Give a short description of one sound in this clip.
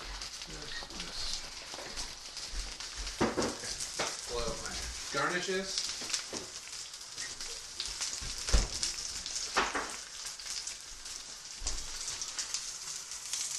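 Fish fillets sizzle in hot oil in a pan.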